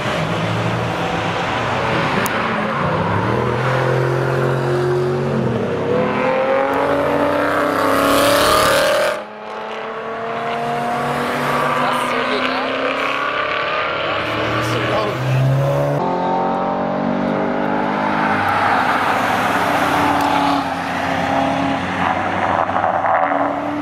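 Powerful car engines roar and rev loudly as cars race past.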